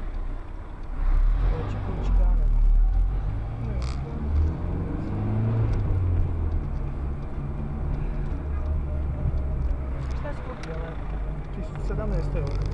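A car engine revs up as the car pulls away and drives on.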